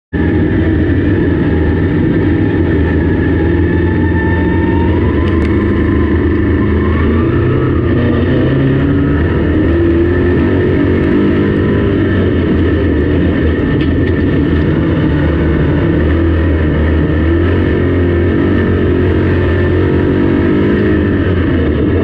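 A race car engine roars loudly up close, rising and falling as it revs.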